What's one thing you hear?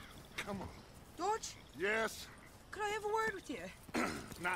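A young woman speaks with urgency nearby.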